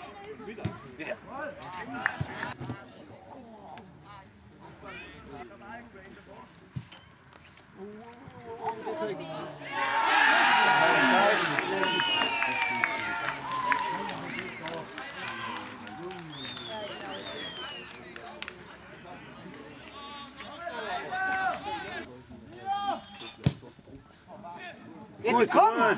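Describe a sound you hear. Men call out to each other across a field.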